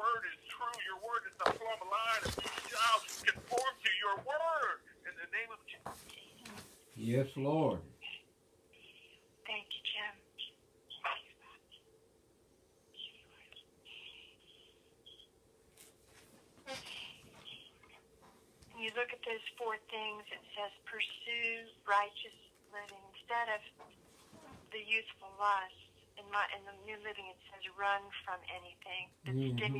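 An elderly man speaks calmly, close to the microphone.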